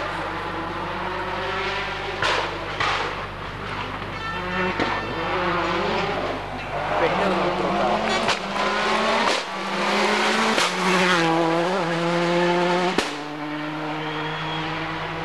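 A rally car engine roars and revs hard as the car speeds past, then fades into the distance.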